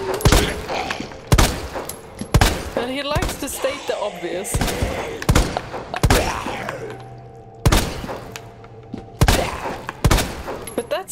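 Gunshots ring out loudly at a steady pace.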